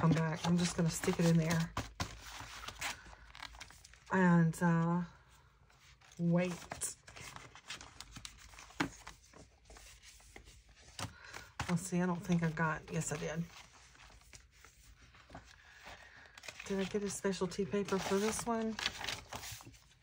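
Paper pages rustle and flap as they are handled close by.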